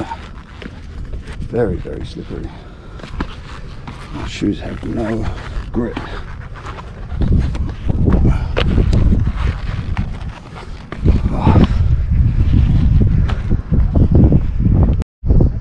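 Footsteps crunch on rock and grit.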